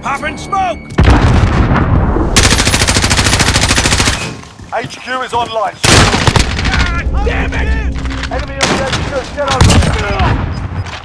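A rifle fires rapid bursts of shots at close range.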